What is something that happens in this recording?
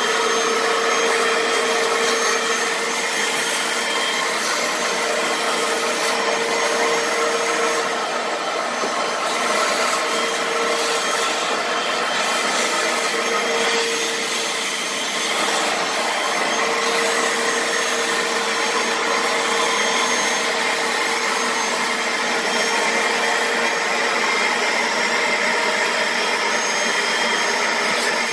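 A vacuum motor whirs loudly and steadily.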